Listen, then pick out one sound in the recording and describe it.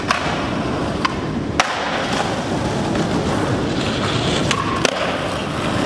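A skateboard clacks and its wheels roll on concrete.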